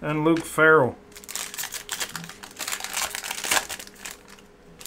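A plastic card wrapper crinkles loudly.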